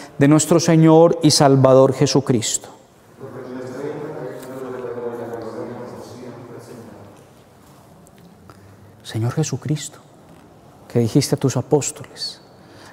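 A man sings and chants into a microphone in an echoing room.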